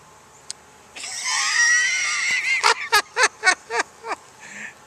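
An older man laughs up close.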